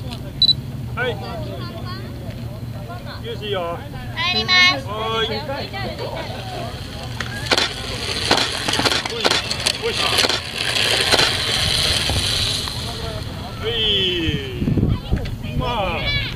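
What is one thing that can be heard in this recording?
Children's voices call out outdoors at a distance.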